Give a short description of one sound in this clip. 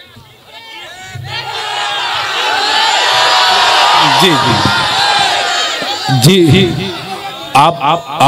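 A man recites loudly and with feeling through a microphone and loudspeakers.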